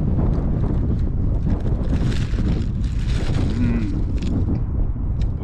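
Wind blows hard across the open ground, buffeting the microphone.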